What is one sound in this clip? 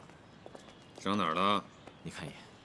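A man speaks briefly in a low voice, close by.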